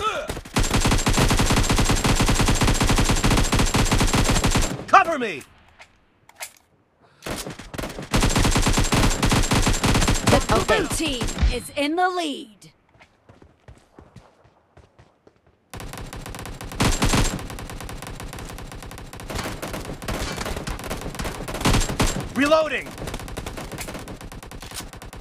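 Rapid automatic gunfire rattles in long bursts.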